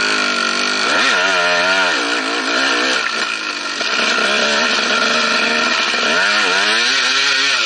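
A dirt bike engine revs and roars up and down.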